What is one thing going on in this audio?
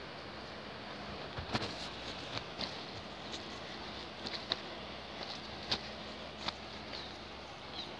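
Footsteps crunch on a grassy path.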